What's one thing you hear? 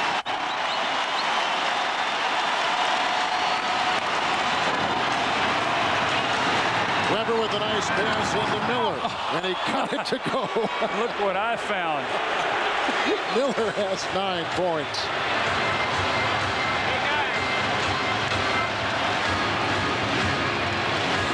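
A large crowd roars and cheers in a big echoing arena.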